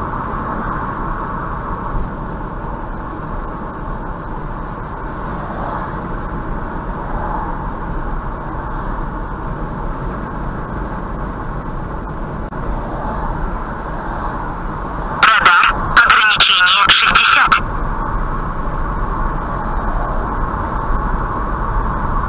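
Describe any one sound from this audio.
A car's engine hums steadily with road noise from the tyres.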